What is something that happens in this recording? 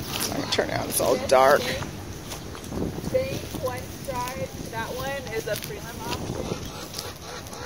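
A young woman calls out from a short distance away outdoors.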